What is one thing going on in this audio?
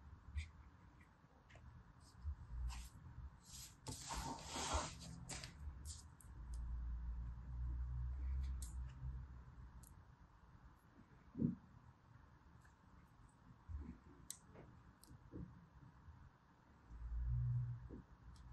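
Fingers press and rub soft sand with quiet crunching and rustling.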